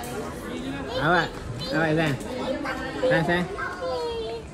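A young child calls out loudly in a high voice.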